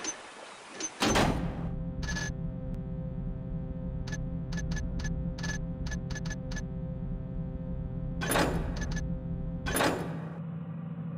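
Low, droning ambient music plays steadily.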